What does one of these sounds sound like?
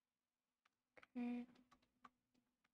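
A young woman makes a short sound with her voice close to a microphone.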